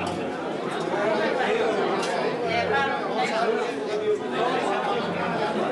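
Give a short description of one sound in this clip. Serving utensils clink against metal trays.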